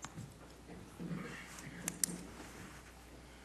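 A man speaks briefly and quietly into a microphone.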